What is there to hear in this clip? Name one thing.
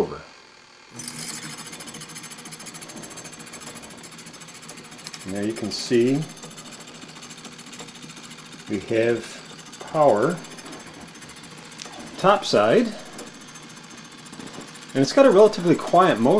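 A drive belt whirs over a turning pulley.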